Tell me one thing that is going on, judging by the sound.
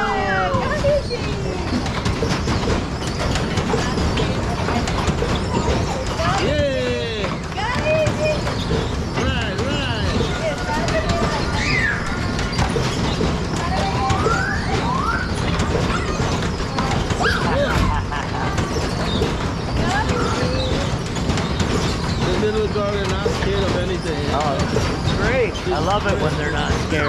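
A ride's machinery rumbles and whirs steadily as it spins.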